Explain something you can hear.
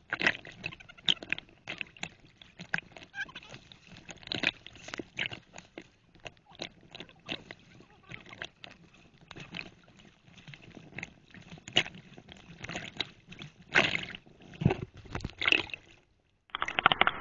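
Shallow water splashes and laps close by.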